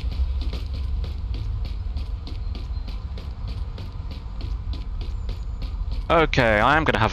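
Footsteps tap quickly on a pavement.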